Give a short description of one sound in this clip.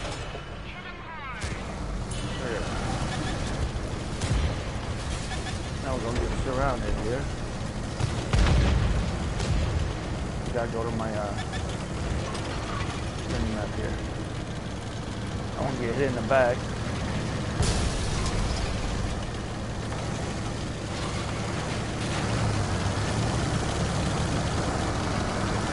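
Tank treads clank and grind over rubble.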